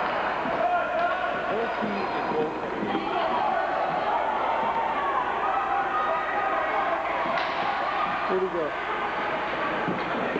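Ice skates scrape across an ice rink.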